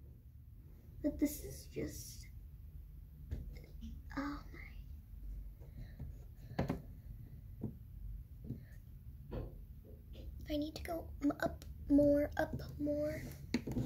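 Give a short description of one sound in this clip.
A young girl talks close by, quietly and casually.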